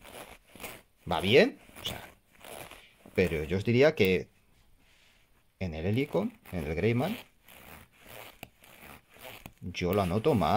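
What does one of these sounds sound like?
Denim fabric rustles as a hand handles it.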